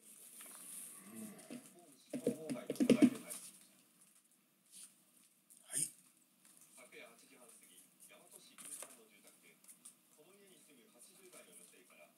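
Cards rustle and slide softly as hands shuffle through them.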